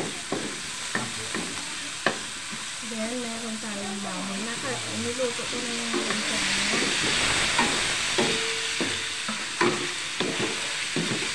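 Food sizzles in hot oil in a wok.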